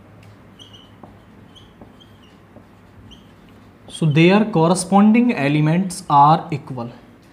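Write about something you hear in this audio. A marker squeaks as it writes on a whiteboard.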